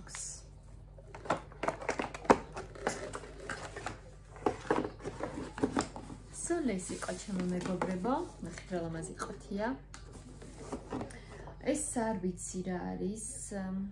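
Packaging and bottles rustle and clink as they are handled.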